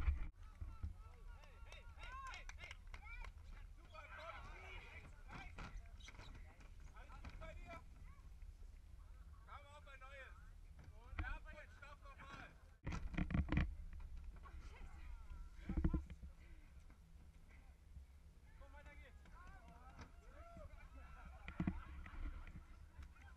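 People shout and cheer outdoors at a distance.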